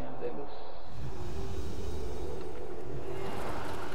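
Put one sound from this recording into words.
Magic spells whoosh and chime in a battle.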